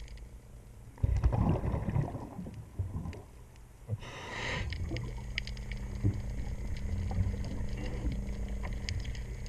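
Air bubbles gurgle and rumble underwater from a diver's breathing.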